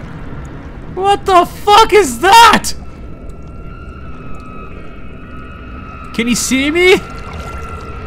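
A young man speaks with animation, close into a headset microphone.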